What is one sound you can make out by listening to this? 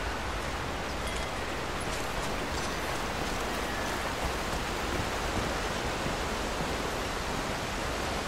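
A waterfall rushes and roars close by.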